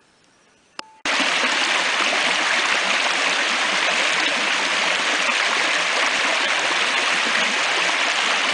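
A shallow stream rushes and splashes over stones.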